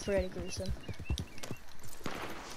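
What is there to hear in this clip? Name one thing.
Horse hooves thud on grass.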